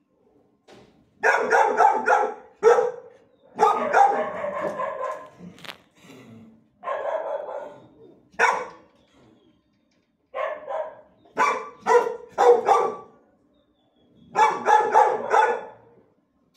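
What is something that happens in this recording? A dog barks loudly in short bursts nearby.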